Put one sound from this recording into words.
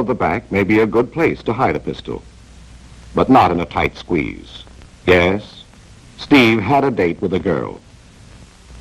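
A woman speaks softly and warmly, close by.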